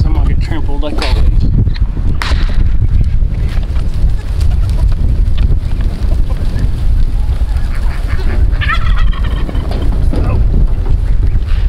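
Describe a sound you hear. Goats bleat loudly nearby.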